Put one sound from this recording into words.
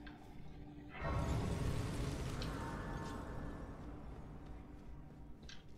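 A soft chime swells and slowly fades.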